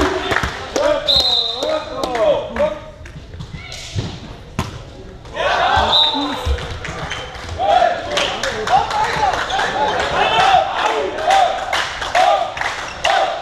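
Players shout and call out loudly in an echoing hall.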